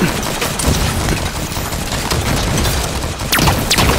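Explosions boom with a low rumble.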